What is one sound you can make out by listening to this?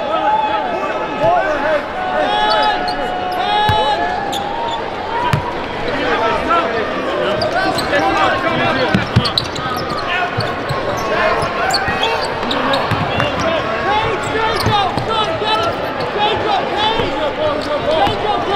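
A basketball bounces on the court with dull thuds.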